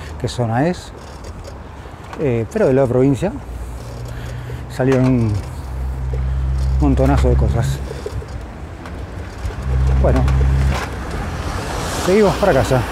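Bicycle wheels roll over pavement.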